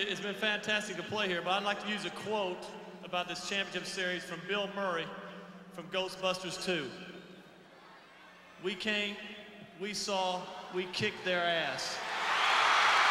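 A man speaks with animation through a microphone and loudspeakers in a large arena.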